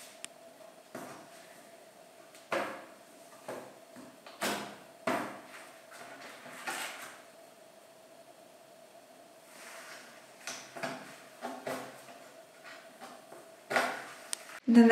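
A hammer taps sharply on wood.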